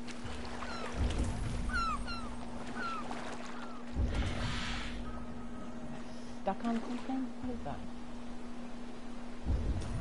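Oars splash heavily into the water every few seconds.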